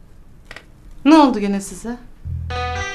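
A young woman answers in a raised voice.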